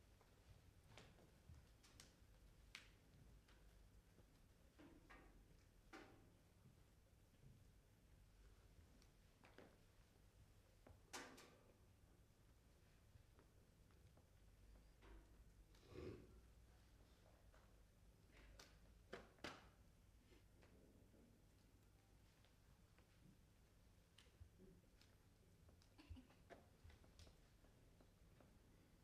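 Footsteps shuffle and thud softly on a stage floor in a quiet, large hall.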